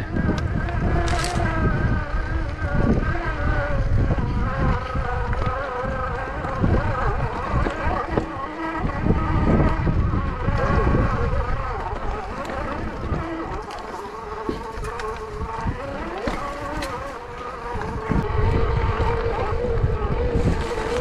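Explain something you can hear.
Wind rumbles loudly across the microphone outdoors.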